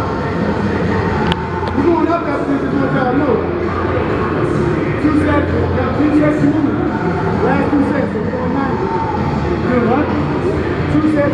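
A man exhales hard with each lift.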